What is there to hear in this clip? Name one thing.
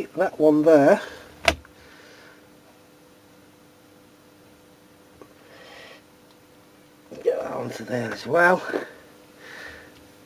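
Batteries click and rattle in a plastic holder.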